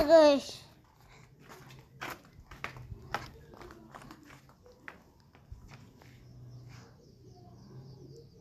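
A child speaks close to a microphone.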